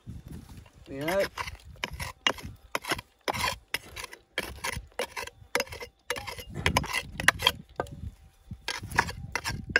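A pick strikes and scrapes rocky ground in repeated blows.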